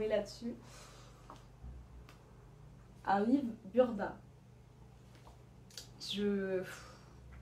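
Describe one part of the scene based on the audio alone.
A young woman talks calmly and closely, in short bursts.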